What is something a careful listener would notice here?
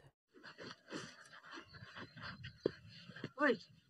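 Footsteps scuff on a dirt path.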